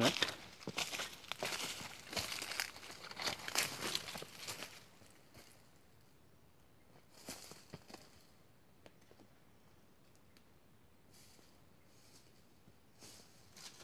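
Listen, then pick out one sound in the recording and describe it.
Footsteps crunch through dry leaves and fade into the distance.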